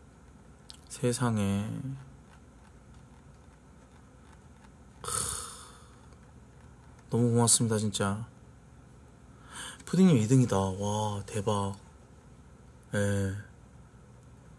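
A man speaks casually into a close microphone, in short bursts.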